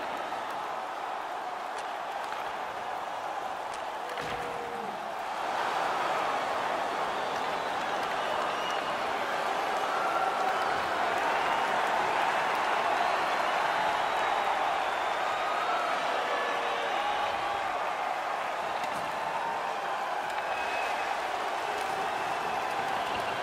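A large crowd roars steadily in an echoing arena.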